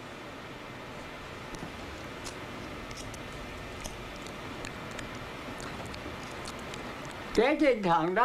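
A cat laps softly at food from a dish.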